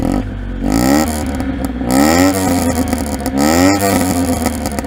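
A car engine revs up sharply in short bursts.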